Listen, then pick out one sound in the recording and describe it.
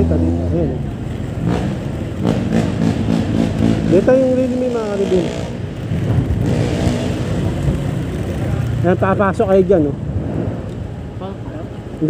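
A motor scooter engine hums steadily while riding.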